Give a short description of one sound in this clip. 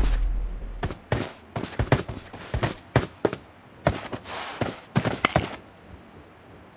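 Footsteps tap on the ground.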